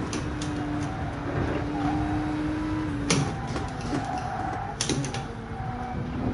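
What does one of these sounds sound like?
A racing car engine hums steadily at high revs.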